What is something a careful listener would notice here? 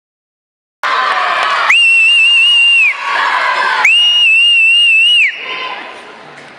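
A crowd cheers and screams loudly in a large echoing hall.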